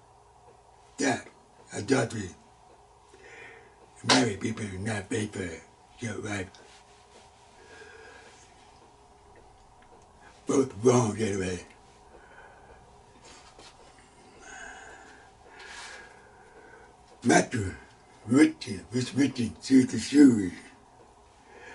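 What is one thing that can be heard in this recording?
An elderly man speaks with emphasis into a close microphone, in bursts with pauses.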